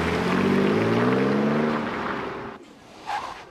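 A car drives past on a wet road.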